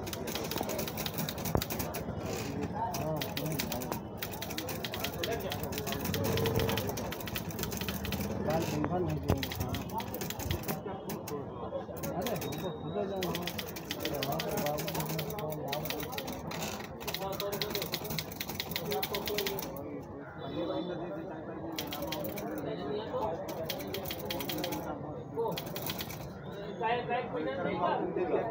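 A manual typewriter clacks rapidly as keys are struck.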